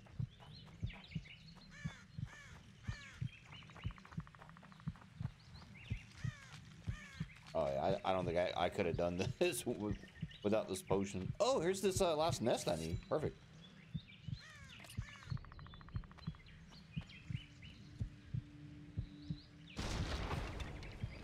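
Footsteps crunch steadily on a forest floor.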